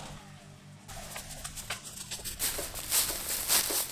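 Footsteps crunch on dry grass, coming closer.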